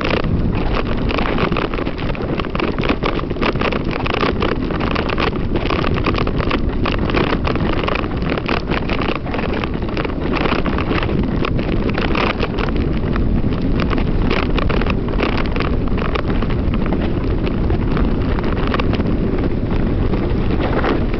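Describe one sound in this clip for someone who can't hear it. A bicycle rattles and clatters over a bumpy trail.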